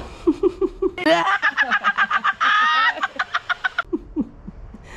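A man laughs loudly and wildly.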